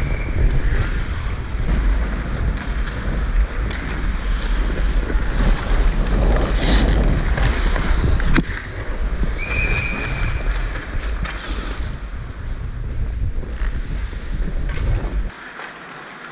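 Ice skates scrape and carve across the ice close by.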